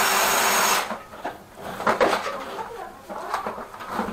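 A hard plastic case knocks and clatters as it is handled.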